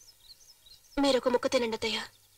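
An older woman speaks calmly, close by.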